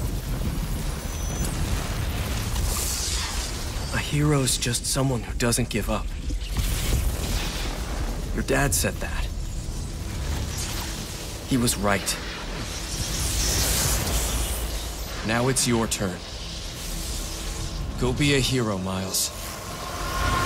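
Electricity crackles and sizzles loudly.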